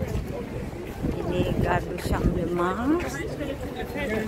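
Young people talk casually as they walk close by.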